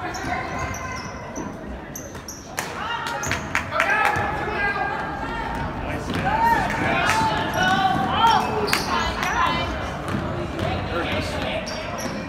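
Spectators chatter and call out in a large echoing gym.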